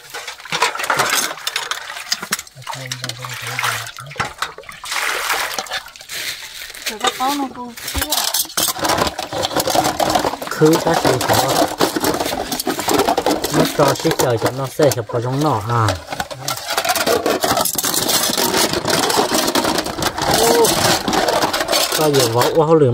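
Ceramic bowls clink against each other in water.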